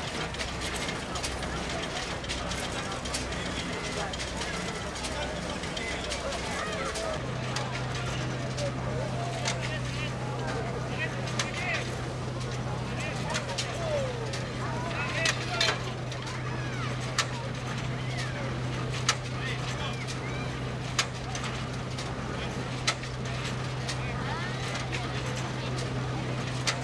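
An old threshing machine rumbles and clatters steadily.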